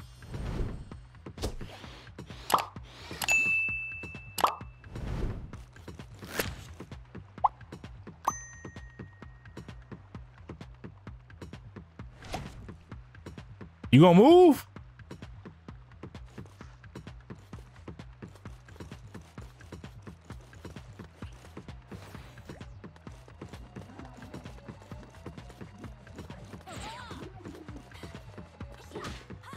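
Short electronic game sound effects chime and swish.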